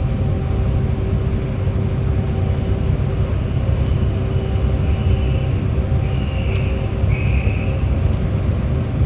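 A bus engine drones steadily in an echoing tunnel.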